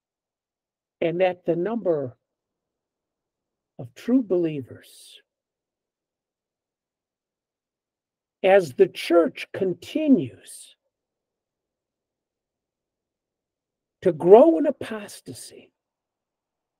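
An elderly man speaks calmly in short bursts through an online call.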